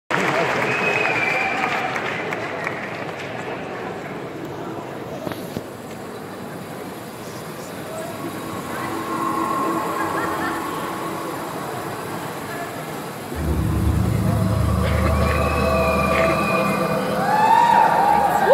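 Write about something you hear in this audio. Live music plays loudly through big speakers in a large hall.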